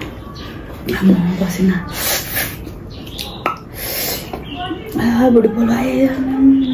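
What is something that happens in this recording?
A young woman hums and makes pleased sounds close by.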